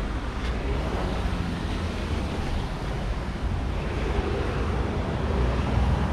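Wind buffets loudly past the car.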